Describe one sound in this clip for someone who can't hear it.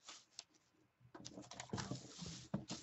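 A hand slides a stiff card across a table.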